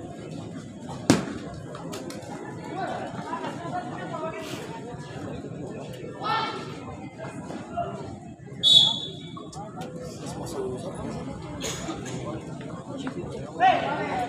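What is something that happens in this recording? A crowd of spectators chatters and shouts nearby.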